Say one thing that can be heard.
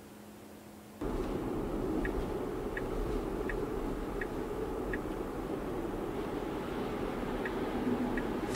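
Tyres hum steadily on the road as a car drives.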